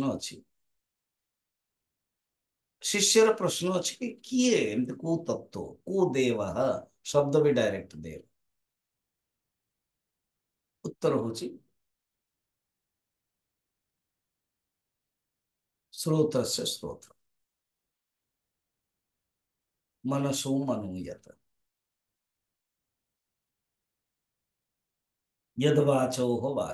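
An elderly man speaks calmly into a microphone, pausing often between phrases.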